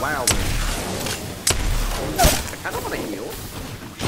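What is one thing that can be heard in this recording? Fire roars in a burst of flames.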